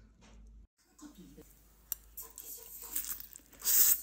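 A young woman slurps noodles close by.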